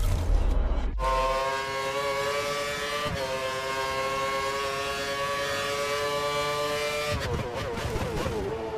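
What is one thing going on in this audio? A racing car engine screams at high revs, holding a steady pitch.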